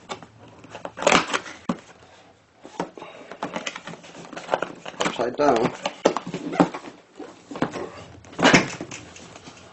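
A cardboard box lid scrapes open and thumps shut.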